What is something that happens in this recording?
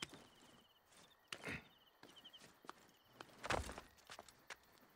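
A man climbs down a rock face, his hands and feet scraping on stone.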